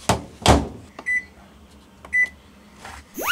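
A washing machine's control panel beeps as its buttons are pressed.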